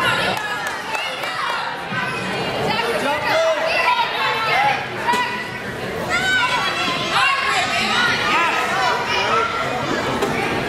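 A crowd of men, women and children chatters and calls out in a large echoing hall.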